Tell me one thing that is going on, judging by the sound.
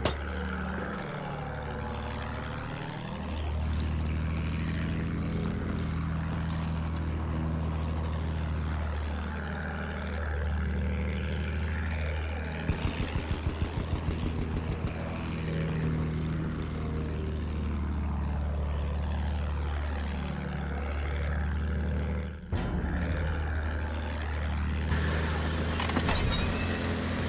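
A propeller plane's engine drones steadily, its pitch swelling and dipping.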